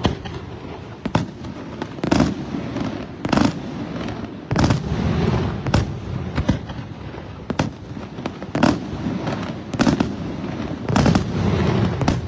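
Fireworks burst with loud booming bangs.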